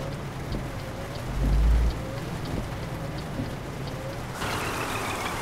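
A windscreen wiper swishes back and forth.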